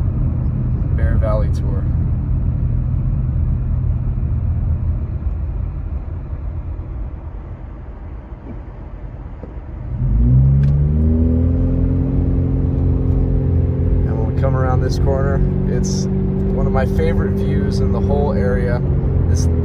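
A car's tyres rumble steadily on the road, quieting as the car slows.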